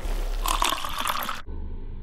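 Tea pours into a cup.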